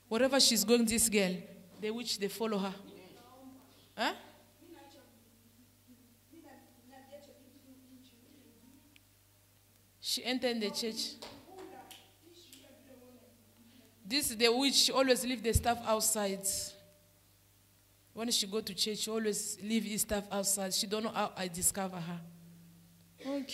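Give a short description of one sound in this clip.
A woman speaks forcefully into a microphone, heard over loudspeakers in an echoing room.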